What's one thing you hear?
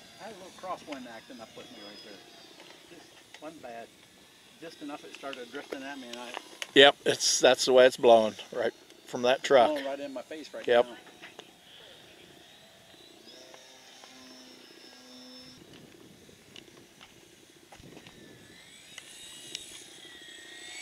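A model airplane engine whines overhead, rising and falling as the plane turns.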